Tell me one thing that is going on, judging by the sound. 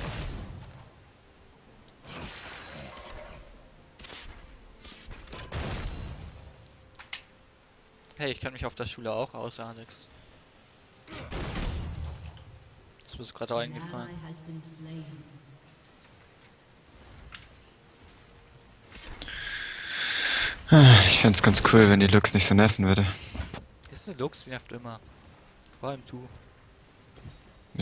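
Spell effects whoosh and crackle in a video game fight.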